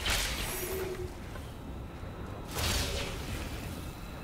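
Game spells burst with loud whooshing blasts.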